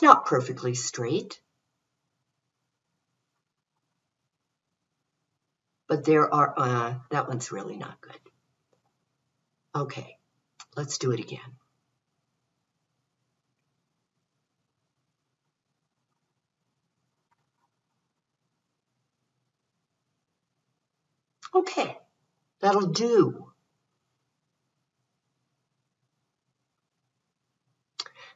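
An elderly woman speaks calmly into a microphone, pausing between phrases.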